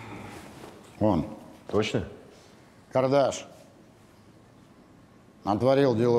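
A middle-aged man speaks in short, heavy phrases close by, with pauses between them.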